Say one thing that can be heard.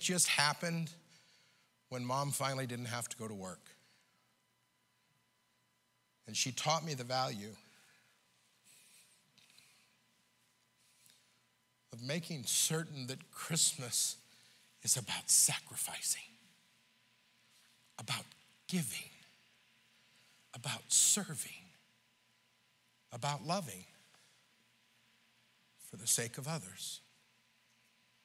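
A middle-aged man preaches with animation through a microphone in a large room, pausing between phrases.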